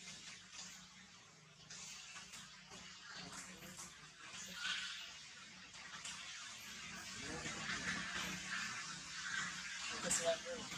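Leaves rustle as a monkey shifts about on a branch.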